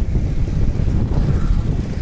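A motorcycle passes by.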